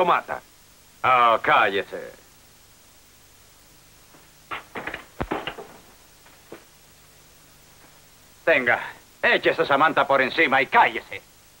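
An older man speaks roughly, close by.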